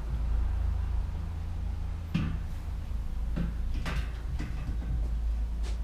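A bicycle wheel knocks and rattles as it is handled.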